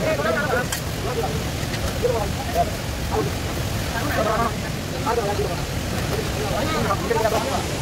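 A metal ladle scrapes against a cooking pot.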